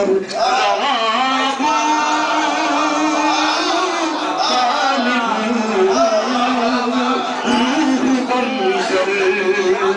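A man sings loudly with feeling into a microphone.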